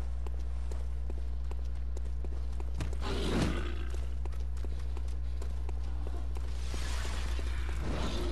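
Quick footsteps run over hard stone ground.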